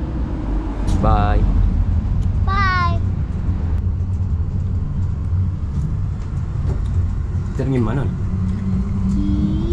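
A tram rumbles steadily around the listener.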